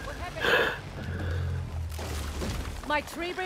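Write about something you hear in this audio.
A wooden tree bridge cracks and crashes down with a low rumble.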